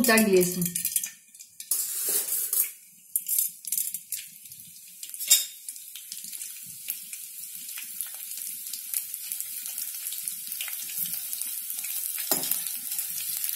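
Food sizzles and crackles in hot oil.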